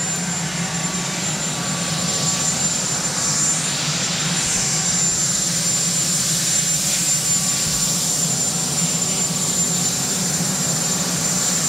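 A helicopter engine whines steadily nearby.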